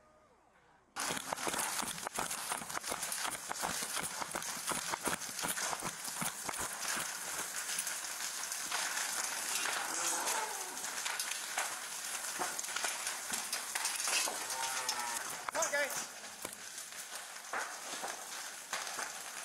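A large barn fire roars and crackles.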